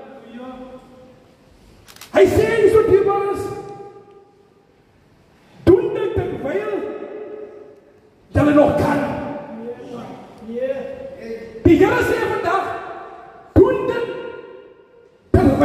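A man speaks with passion into a microphone, heard through loudspeakers in an echoing hall.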